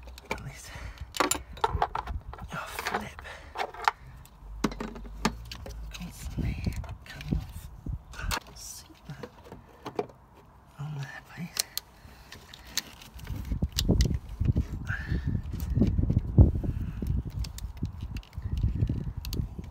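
Plastic parts rattle and knock as hands work them loose.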